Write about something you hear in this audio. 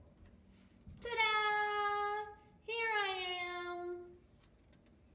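A young woman sings out two long, high, playful notes close by.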